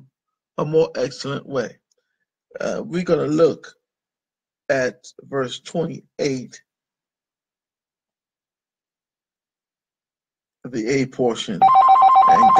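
A man speaks calmly, close to a microphone, in short phrases with pauses.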